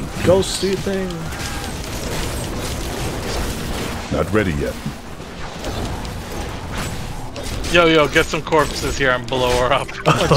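Magic spells crackle and zap in a fight.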